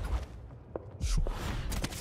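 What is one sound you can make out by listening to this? A magical spell whooshes.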